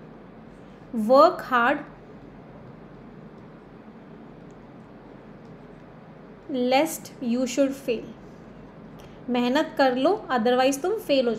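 A young woman speaks calmly and clearly into a close microphone, pausing between phrases.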